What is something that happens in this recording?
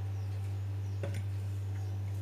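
A slice of toast is set down on top of another with a soft tap.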